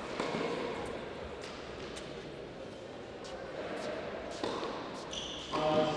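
A tennis ball bounces on a hard court.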